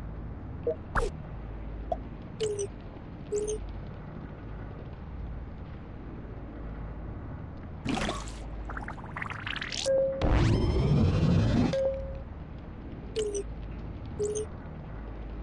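Short electronic beeps chirp now and then as game menus open.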